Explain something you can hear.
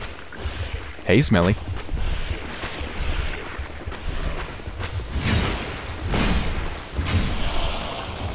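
A sword clashes and slashes in combat.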